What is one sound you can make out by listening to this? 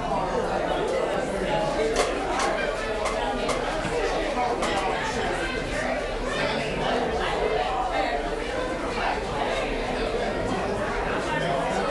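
An electric guitar plays through an amplifier.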